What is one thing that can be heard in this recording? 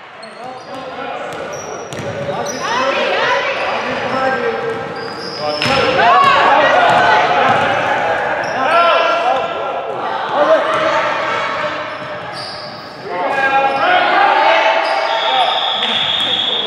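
Sneakers squeak sharply on a wooden gym floor in a large echoing hall.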